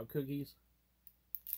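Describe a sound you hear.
A man speaks briefly close to the microphone.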